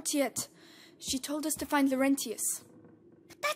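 A young boy answers softly.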